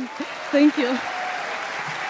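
A woman speaks with emotion into a microphone.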